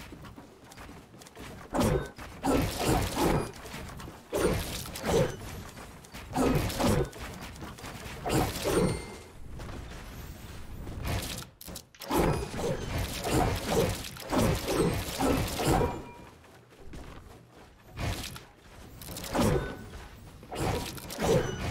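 Wooden building pieces clack into place in quick bursts.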